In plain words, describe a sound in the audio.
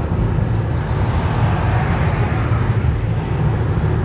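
A car passes close by.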